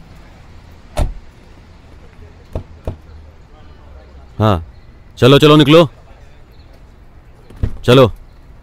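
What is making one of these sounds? Car doors open with sharp clunks.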